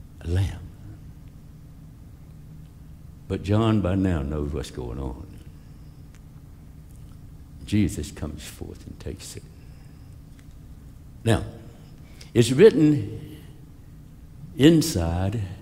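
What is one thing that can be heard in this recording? A middle-aged man speaks with animation through a microphone in a large echoing hall, with long pauses.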